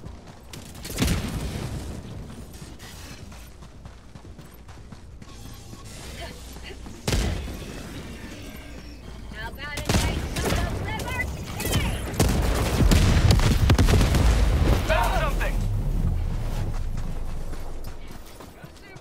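Explosions boom and rumble in bursts.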